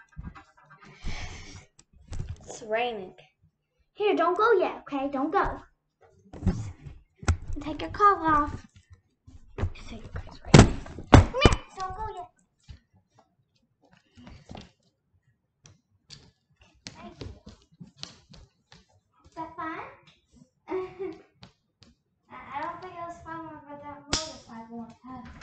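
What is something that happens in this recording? A young girl talks with animation close to the microphone.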